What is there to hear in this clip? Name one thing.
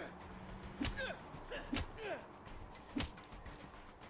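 A fist thuds into a man's body.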